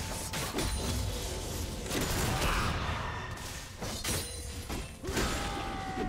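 Game spell effects crackle and whoosh in a fight.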